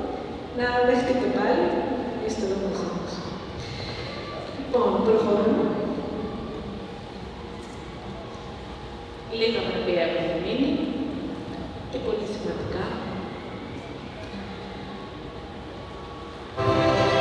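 A woman speaks calmly through a microphone and loudspeakers in an echoing hall.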